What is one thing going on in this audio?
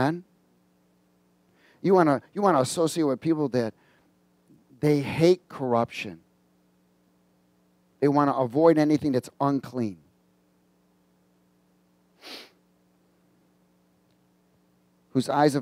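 A middle-aged man speaks with animation into a headset microphone, in bursts with pauses.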